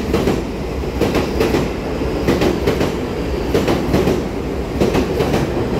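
A train rushes past close by with a steady rumble.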